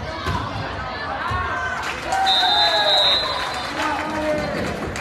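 A crowd cheers and talks loudly in an echoing gym.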